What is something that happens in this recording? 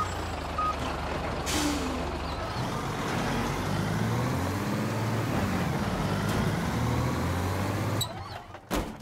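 A truck engine rumbles loudly.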